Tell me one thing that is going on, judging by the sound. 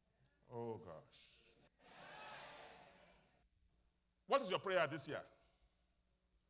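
A man preaches with animation through a microphone in a large hall.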